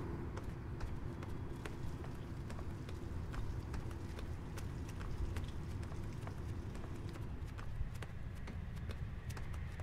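Footsteps tap softly on a floor.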